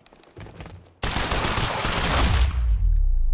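A rifle fires a rapid burst of shots up close.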